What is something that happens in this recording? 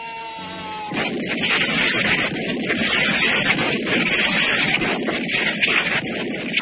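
Smoke bombs roar and crackle loudly.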